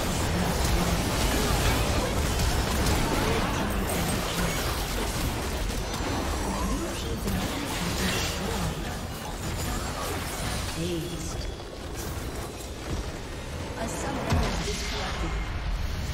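Game spell effects and battle sounds clash and burst rapidly.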